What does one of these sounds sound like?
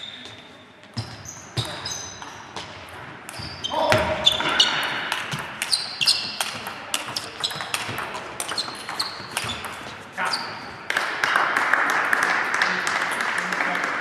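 A table tennis ball clicks rapidly back and forth on paddles and a table.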